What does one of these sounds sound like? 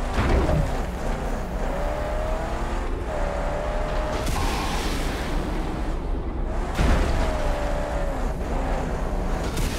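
Tyres skid and spray over sand and gravel.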